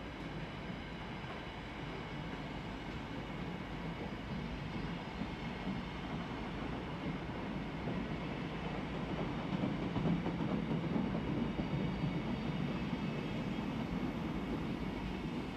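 A long freight train rumbles and clatters steadily past on the rails.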